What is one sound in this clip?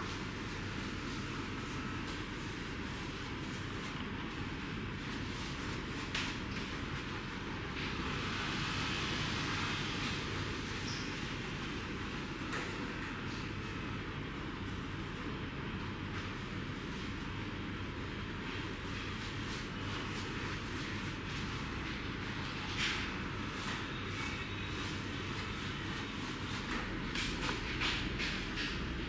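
Fingers scrub lathered hair, with soft squishing and crackling of foam, close up.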